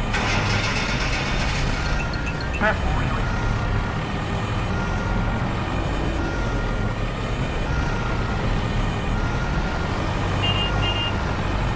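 A small vehicle's engine hums steadily as it drives along.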